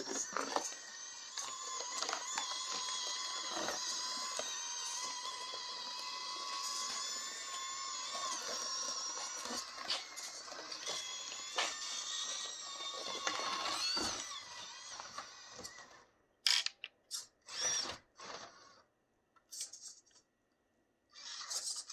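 Plastic wheels scrape and knock over a rough surface.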